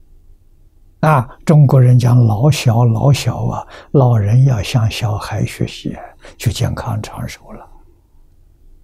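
An elderly man speaks calmly and warmly into a microphone.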